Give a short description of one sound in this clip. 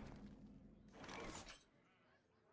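A magical game sound effect whooshes.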